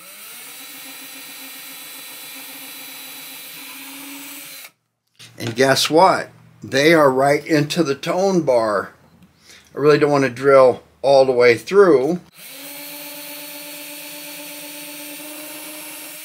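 A cordless drill whirs steadily.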